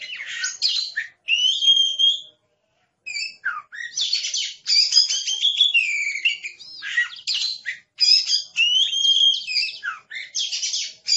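A songbird sings a rich, varied song of whistles and chirps close by.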